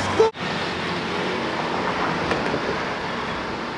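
A motorbike passes by on the road.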